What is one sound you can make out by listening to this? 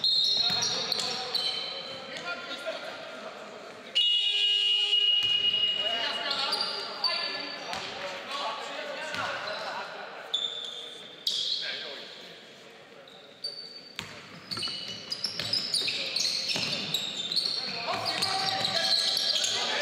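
Spectators murmur and call out in an echoing hall.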